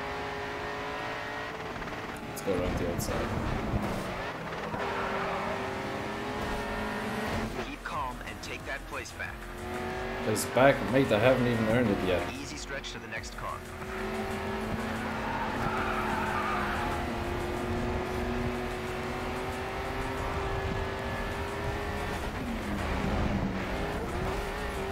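A racing car engine roars steadily and revs up and down.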